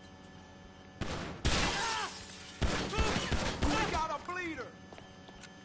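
Gunshots ring out in quick bursts, echoing in a hard room.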